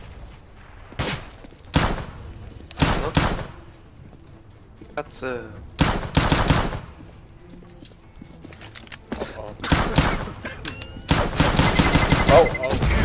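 Pistol shots ring out in short bursts.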